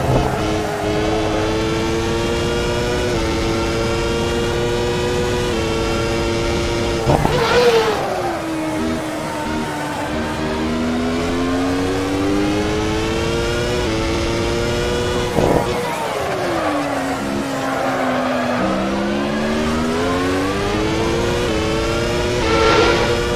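Gear shifts crack sharply as the engine changes gear.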